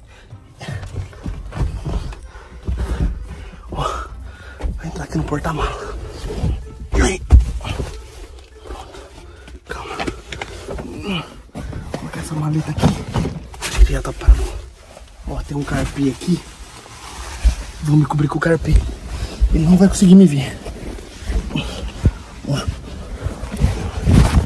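Fabric rustles and thumps as things are moved about.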